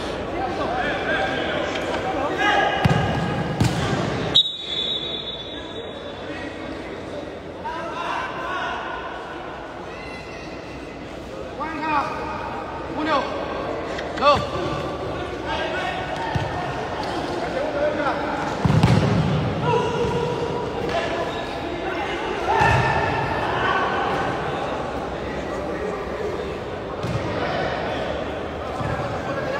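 A crowd of spectators shouts and chatters in a large echoing hall.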